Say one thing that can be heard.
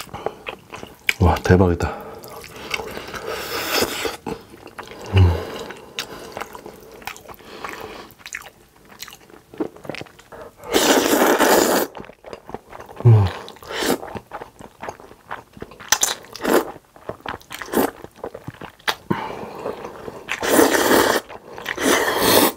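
A man chews wet food with sticky, smacking sounds.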